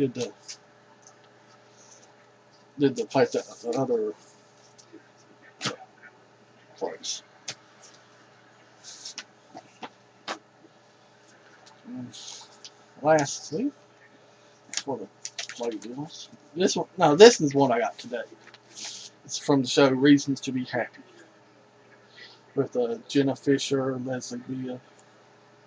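A middle-aged man talks casually into a close headset microphone, with pauses.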